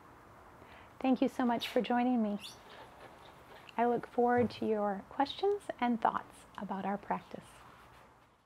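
A young woman speaks calmly and gently, close to a microphone.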